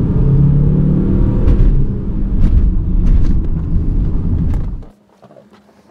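A car engine roars as the car accelerates, heard from inside.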